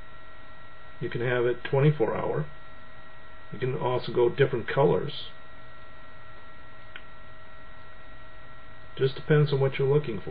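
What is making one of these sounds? A middle-aged man speaks calmly in short bursts, close to a webcam microphone.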